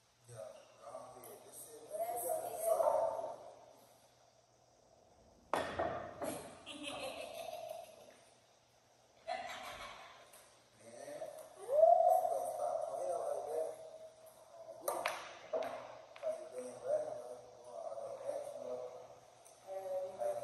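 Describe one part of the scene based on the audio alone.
A young woman talks and laughs nearby.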